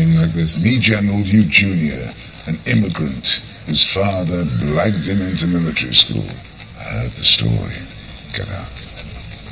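An elderly man speaks calmly and firmly.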